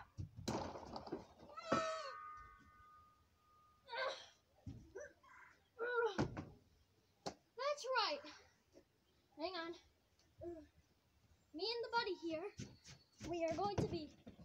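A young boy shouts and yells playfully nearby.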